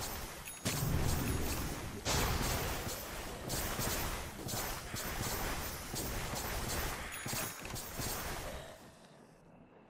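Video game battle sounds clash and crackle loudly.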